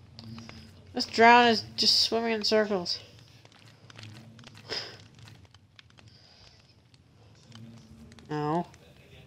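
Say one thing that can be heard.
A zombie groans low and hoarsely nearby.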